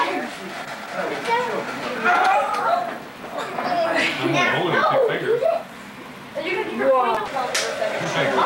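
An elderly woman talks and laughs warmly up close.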